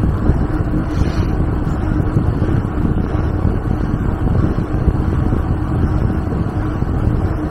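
Wind rumbles loudly across a moving microphone outdoors.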